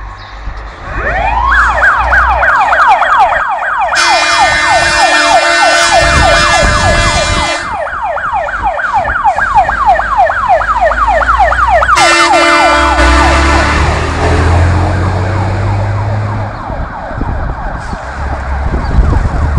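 A fire engine siren wails loudly, rising and falling fast.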